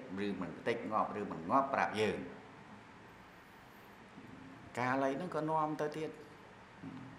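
A man speaks calmly into a microphone, close by, with pauses.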